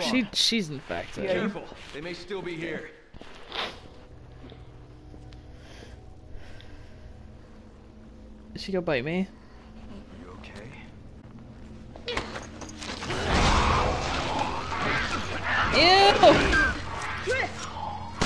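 A young woman speaks in a tense, low voice.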